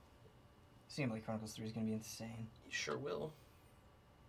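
A man speaks casually nearby.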